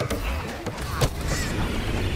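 A magical blast bursts with a loud crash.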